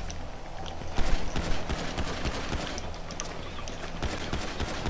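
A pistol fires several sharp shots in quick succession.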